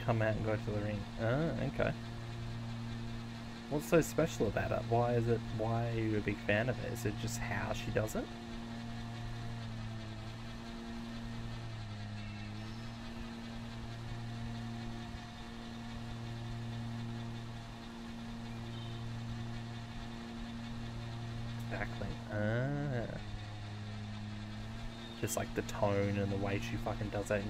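A small mower engine hums steadily.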